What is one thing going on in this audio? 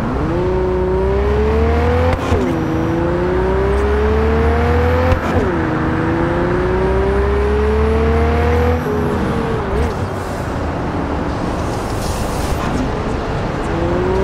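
Tyres rumble steadily on a road.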